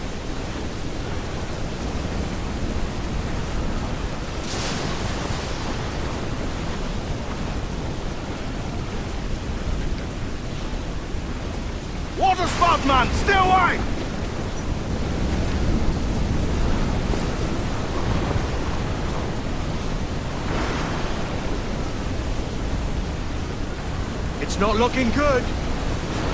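Strong wind roars steadily.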